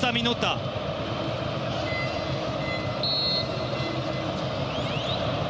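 A large stadium crowd murmurs and chants steadily outdoors.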